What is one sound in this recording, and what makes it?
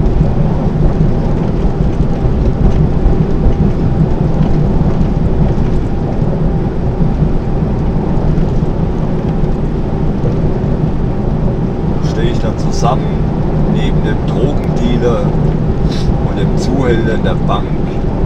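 A diesel truck drones at motorway speed, heard from inside the cab.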